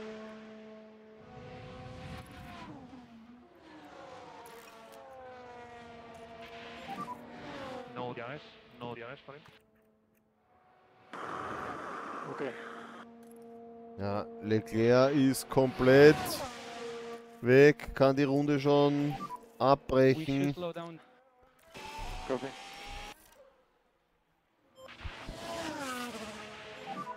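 A racing car engine whines, rising and falling in pitch.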